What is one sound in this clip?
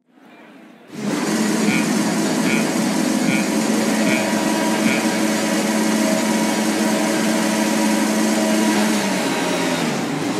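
Racing car engines idle and rev loudly on a starting grid.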